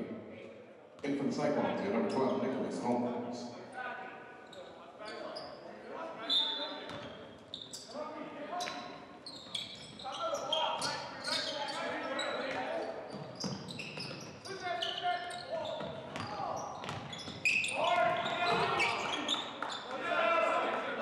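Young men shout and call out to each other in an echoing gym.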